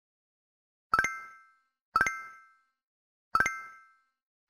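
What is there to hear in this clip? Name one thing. Short, bright plinks sound one after another.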